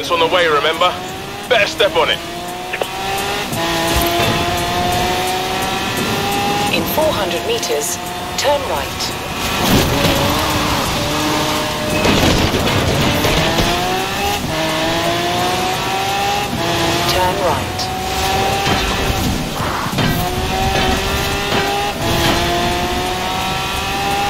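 A high-revving car engine roars, climbing in pitch and dropping with each gear change.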